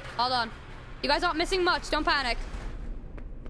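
A young woman speaks animatedly into a close microphone.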